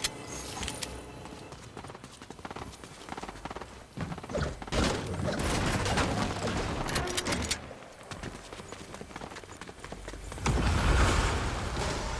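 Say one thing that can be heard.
A pickaxe swings with a whoosh.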